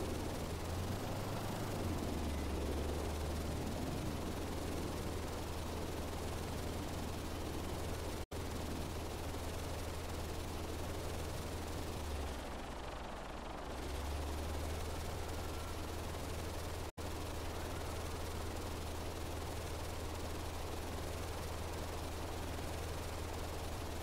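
A blimp's engines drone steadily with a low hum.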